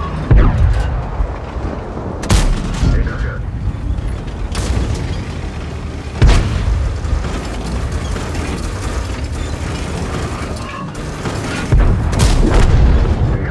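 Heavy cannon shots boom and echo.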